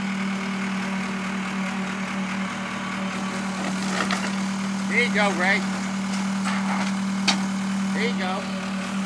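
A backhoe engine rumbles steadily nearby.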